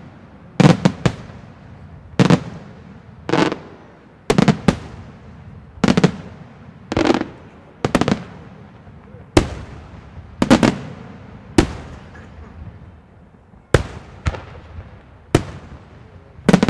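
Fireworks crackle and fizzle after the bursts.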